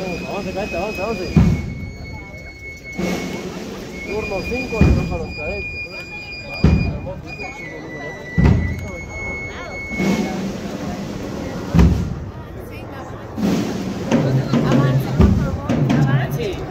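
A large crowd murmurs outdoors.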